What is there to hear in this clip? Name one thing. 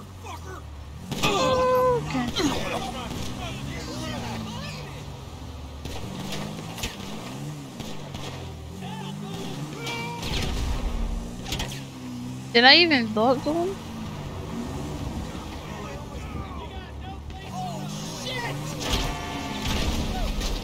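A motorbike engine revs and whines, rising and falling in pitch.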